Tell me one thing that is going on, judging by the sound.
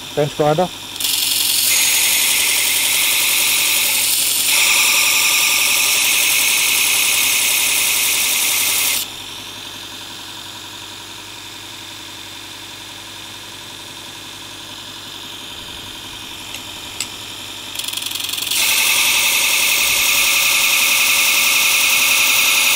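A belt sander grinds a metal blade with a harsh, steady hiss.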